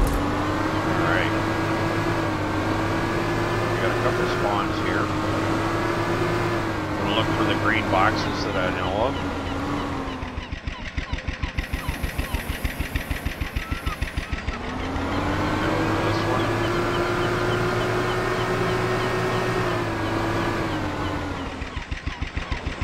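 A small outboard motor drones steadily, dropping off and then revving back up.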